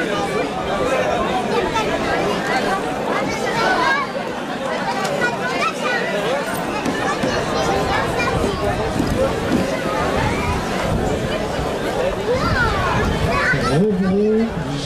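A crowd of people chatter outdoors.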